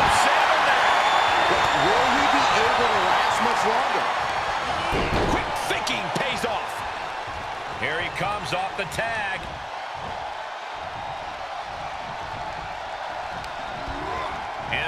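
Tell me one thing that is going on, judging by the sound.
A large crowd cheers and roars in a big arena.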